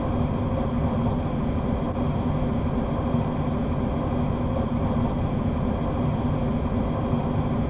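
A train engine hums and rumbles steadily.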